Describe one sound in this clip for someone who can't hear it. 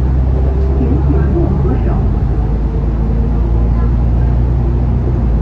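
A bus engine rumbles steadily as the bus drives along.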